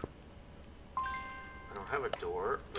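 A short electronic chime sounds.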